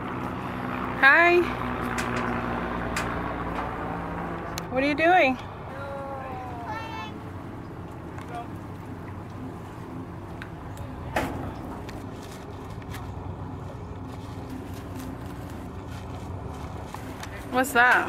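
A young girl calls out nearby.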